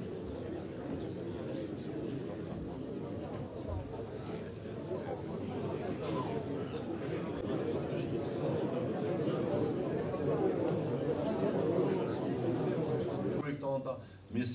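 A murmur of voices fills a room.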